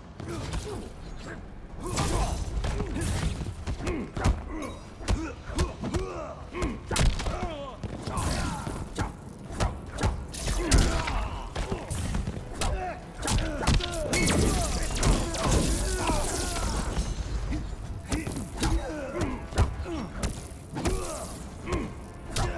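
Punches and kicks land with heavy thuds and smacks.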